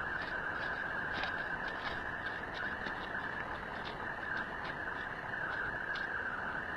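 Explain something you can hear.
A horse's hooves thud on dry dirt at a steady trot.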